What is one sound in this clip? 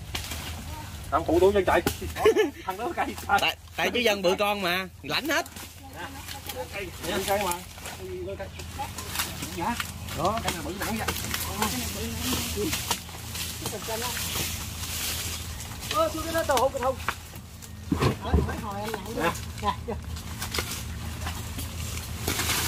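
Men talk loudly with each other outdoors.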